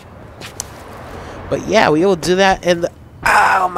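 Footsteps scuff on hard ground.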